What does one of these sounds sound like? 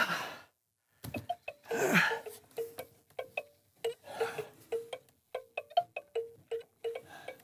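A hand crank clicks and rattles in quick, even turns.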